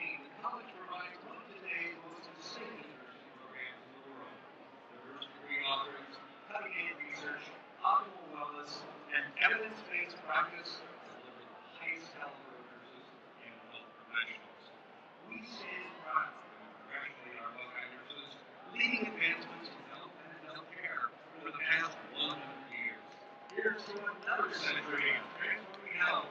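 A large crowd murmurs and chatters in an open stadium.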